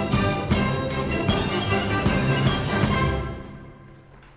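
A flute plays a lively tune.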